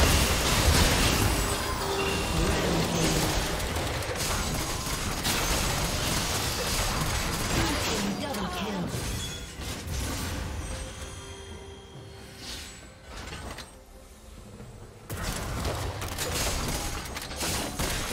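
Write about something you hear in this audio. Game spells blast and crackle in a fight.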